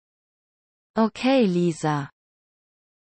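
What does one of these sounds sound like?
A second young woman answers briefly and calmly.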